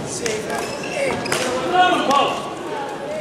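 A shuttlecock is struck with sharp smacks of rackets.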